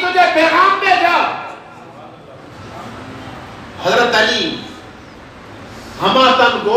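A man preaches loudly and with passion into a microphone, in bursts with pauses.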